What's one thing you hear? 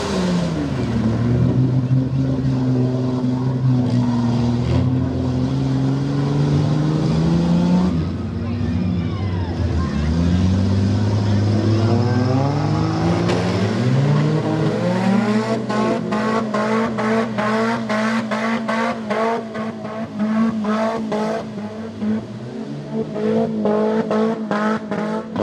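Mud and water splash and spray around spinning tyres.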